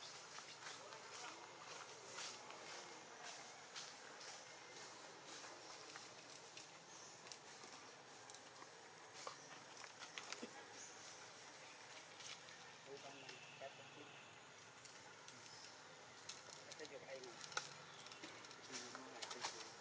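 A baby monkey suckles with soft, wet smacking sounds.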